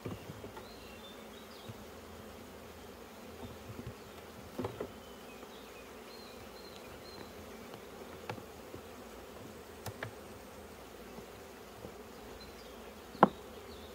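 A hive tool scrapes and knocks against wooden hive frames.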